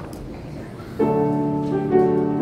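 A piano plays chords.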